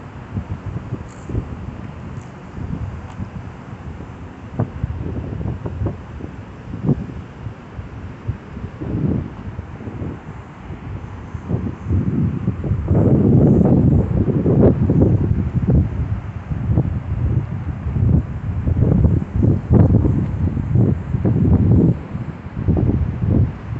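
Strong wind gusts buffet the microphone outdoors, growing stronger partway through.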